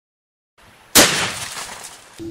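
A sharp bang blasts through a wooden board.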